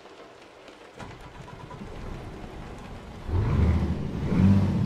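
A truck engine starts up and rumbles, growing louder.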